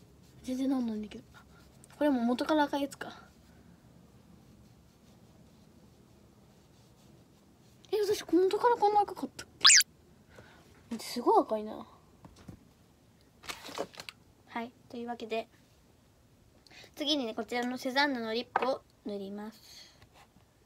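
A young girl talks close to the microphone, with animation.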